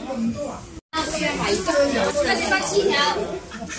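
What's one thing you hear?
A woman and a young girl talk close by.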